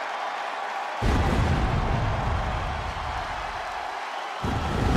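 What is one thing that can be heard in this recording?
Pyrotechnic flames burst with a deep whooshing roar.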